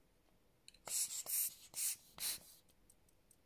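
A hand air blower puffs short bursts of air.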